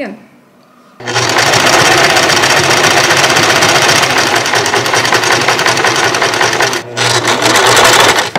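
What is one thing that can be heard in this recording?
A sewing machine whirs steadily as it stitches.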